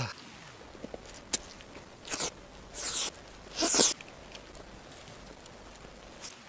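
A man bites and chews soft food close to a microphone.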